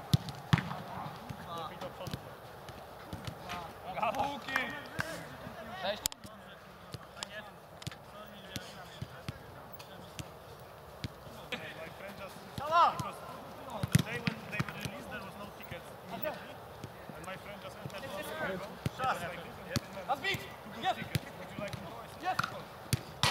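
A ball is kicked hard several times.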